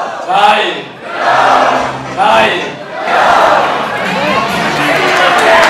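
An older man speaks cheerfully into a microphone over a loudspeaker in an echoing hall.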